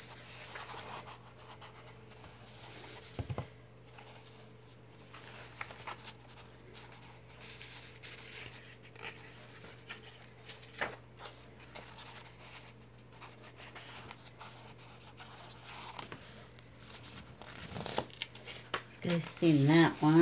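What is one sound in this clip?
Paper pages rustle and flip close by.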